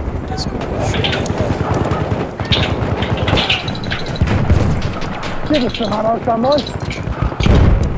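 Gunfire and explosions boom and crackle in a battle.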